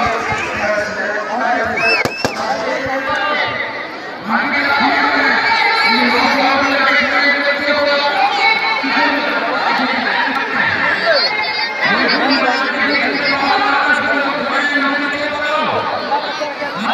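Young men nearby shout and sing with excitement.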